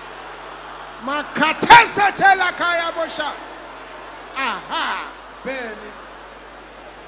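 A man prays loudly and fervently into a microphone, shouting out phrases.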